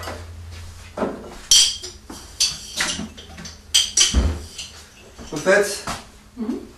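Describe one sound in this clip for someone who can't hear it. Dishes clatter as they are taken from a cupboard.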